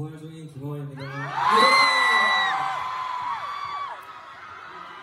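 A crowd of young women screams and cheers loudly.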